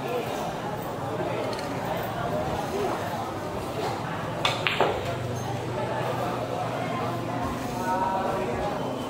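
Men chat quietly in the background.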